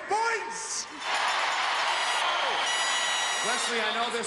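A large crowd cheers and shouts in a big echoing arena.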